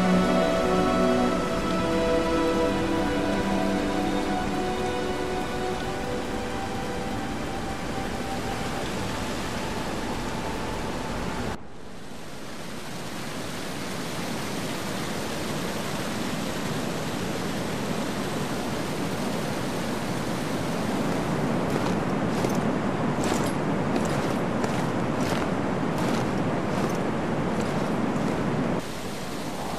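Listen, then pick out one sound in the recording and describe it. A waterfall pours and roars steadily.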